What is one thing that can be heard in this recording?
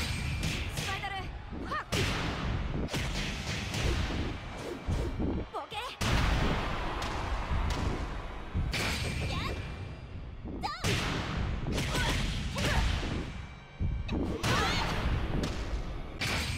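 A young woman shouts as she fights.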